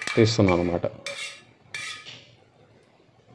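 A metal spoon scrapes against the rim of a pot.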